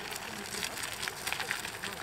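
Wheelchair wheels roll over pavement.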